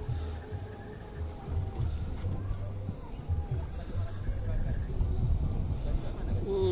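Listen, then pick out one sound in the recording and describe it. A fishing reel whirs as a line is wound in.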